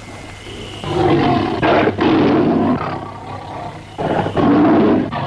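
A young girl cries and wails.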